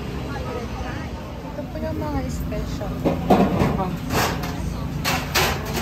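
People chatter nearby amid a busy bustle.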